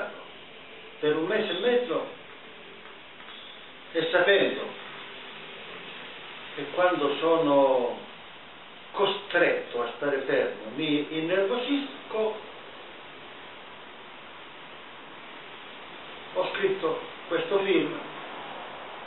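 An older man speaks calmly in short phrases, close by.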